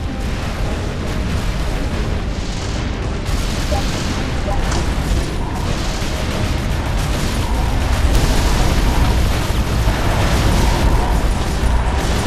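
Laser weapons zap and crackle rapidly.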